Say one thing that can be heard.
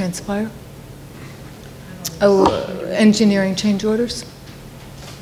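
A woman speaks into a microphone in a room with a slight echo.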